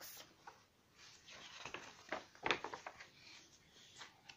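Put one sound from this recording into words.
A young girl reads aloud softly.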